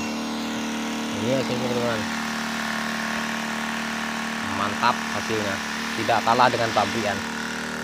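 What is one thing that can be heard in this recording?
A sprayer nozzle hisses as it blasts a fine mist of water.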